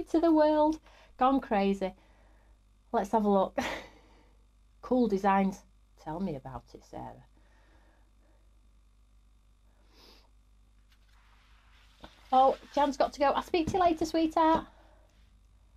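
A woman speaks calmly and warmly, close to a microphone.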